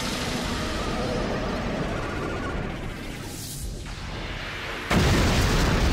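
A magical energy swirls with a rushing hum.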